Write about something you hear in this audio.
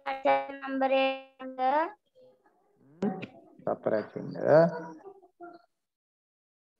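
A young man speaks through an online call.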